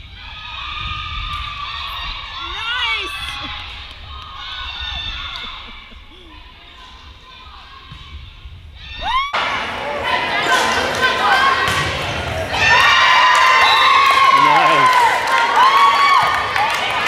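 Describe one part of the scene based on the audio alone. Sneakers squeak sharply on a hard gym floor.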